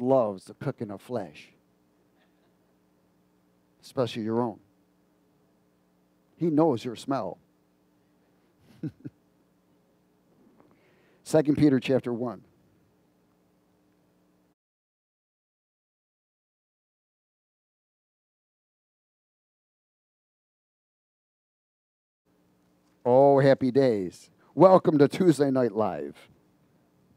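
A man speaks with animation through a headset microphone, in short bursts with pauses.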